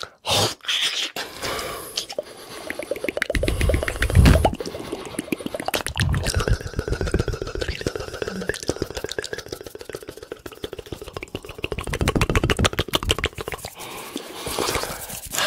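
Hands rub and flick close to a microphone with soft, rapid crackling.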